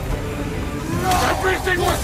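A man grunts and shouts with effort.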